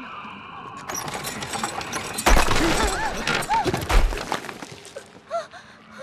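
A huge creature stomps with heavy crashing thuds.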